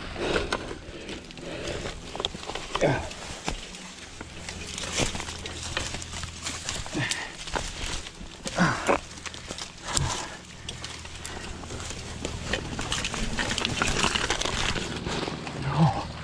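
A bicycle frame rattles and clunks over bumps.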